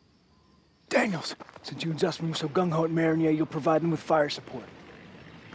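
A young man speaks urgently and close by.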